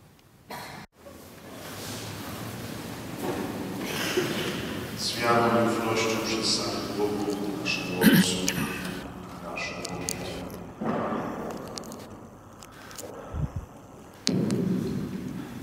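A man's voice rings out over loudspeakers in a large echoing hall.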